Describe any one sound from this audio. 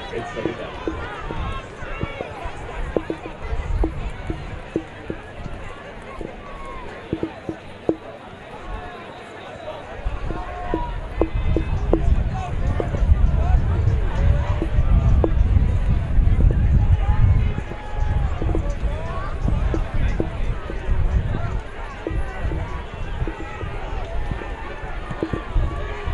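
Football players shout calls across an open field in the distance.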